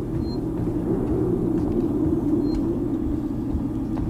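A switch on a wall panel clicks.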